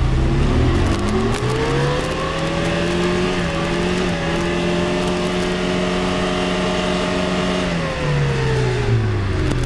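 Tyres spin and churn through mud.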